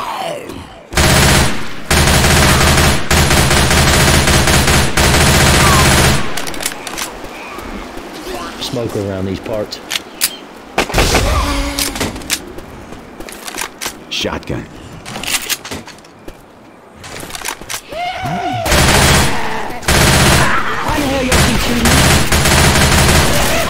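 An automatic rifle fires rapid bursts of loud gunshots.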